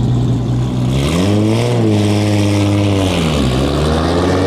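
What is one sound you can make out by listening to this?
A car engine revs up and down sharply.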